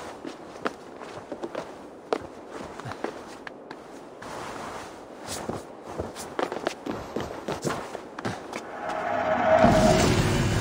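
Hands and boots tap and scrape on stone in quick, uneven knocks.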